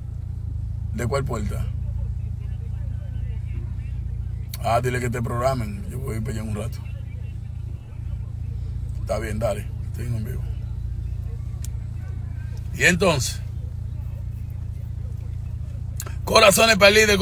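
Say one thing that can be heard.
A man talks on a phone close by, in short bursts.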